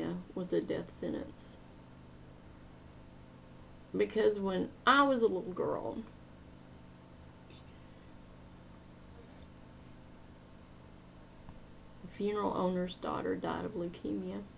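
A middle-aged woman speaks calmly and closely into a microphone, with long pauses.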